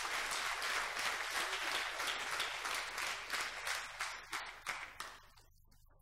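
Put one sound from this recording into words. A woman speaks into a microphone up close.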